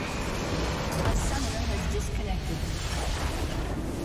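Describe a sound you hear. A game structure explodes with a loud boom.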